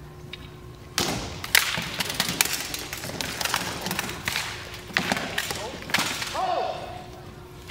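Weapons clash and thud against armour in quick blows.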